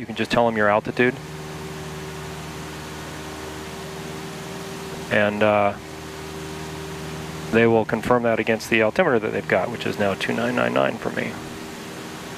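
A man speaks calmly into a headset microphone, in short exchanges.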